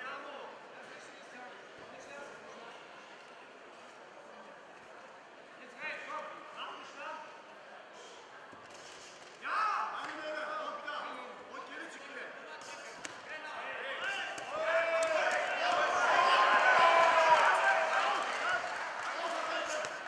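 A crowd cheers and shouts, growing louder.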